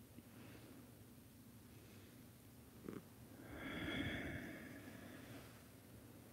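A body shifts and rustles against a mat.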